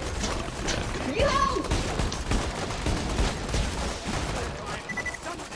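A mounted gun fires rapid shots.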